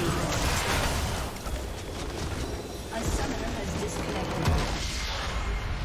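Game spell effects crash and boom in a busy battle.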